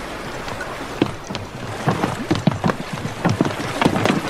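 An oar knocks against a rubber boat.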